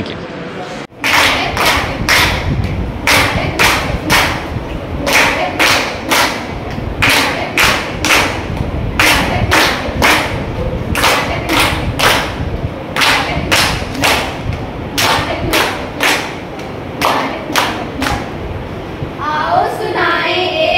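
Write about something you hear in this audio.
Young girls clap their hands in a quick, steady rhythm.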